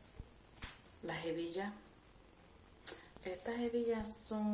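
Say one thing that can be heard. A woman talks calmly close to a microphone.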